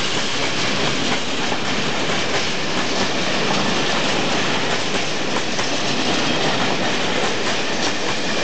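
Freight wagons rattle and screech as they roll across a metal bridge.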